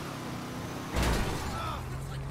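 A car crashes into another car with a bang.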